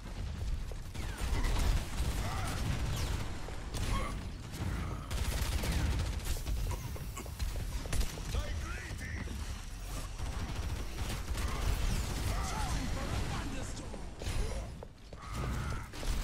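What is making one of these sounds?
A game weapon fires rapid bursts of shots.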